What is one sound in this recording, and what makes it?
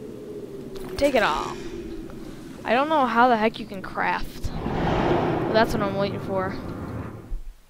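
Magical spell effects whoosh and shimmer with ringing tones.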